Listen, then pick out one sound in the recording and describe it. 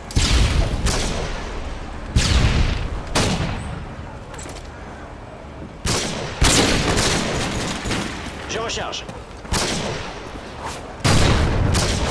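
Rifle shots boom loudly several times, each followed by a fading echo.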